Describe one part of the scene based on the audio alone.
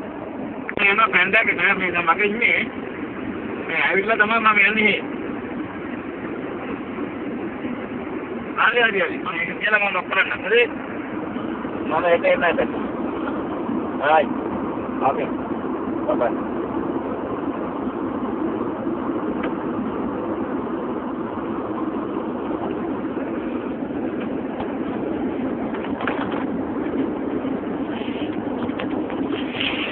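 A car engine hums and tyres roar steadily on the road.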